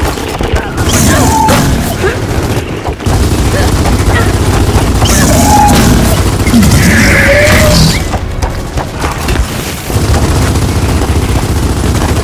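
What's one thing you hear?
A large creature shrieks and roars.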